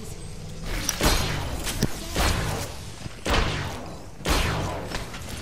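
Heavy gunshots boom at intervals with a short echo.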